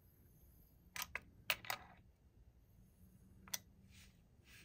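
Metal parts click and clack as they are handled close by.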